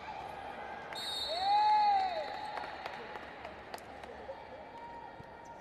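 A crowd cheers in a large echoing hall.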